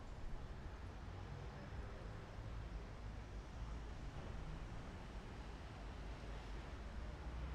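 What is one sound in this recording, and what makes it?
A car drives along, with a low engine rumble and road noise heard from inside.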